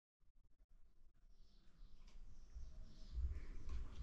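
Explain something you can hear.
A spoon scrapes inside a container.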